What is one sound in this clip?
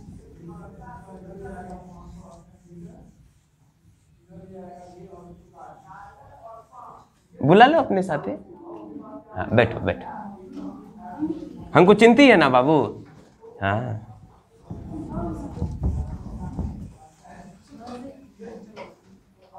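A duster rubs across a whiteboard.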